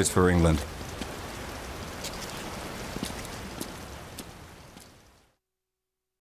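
Rain patters steadily on hard ground.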